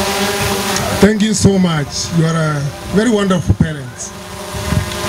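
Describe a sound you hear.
A man speaks with animation into a microphone, heard through a loudspeaker outdoors.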